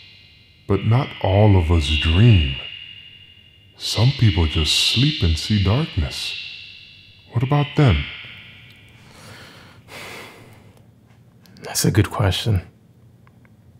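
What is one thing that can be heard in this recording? A man speaks in short bursts, his voice ringing with a heavy echo.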